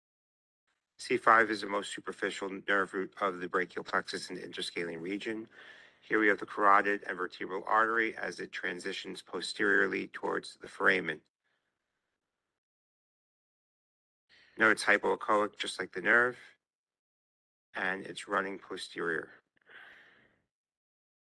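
A man speaks calmly over an online call, explaining.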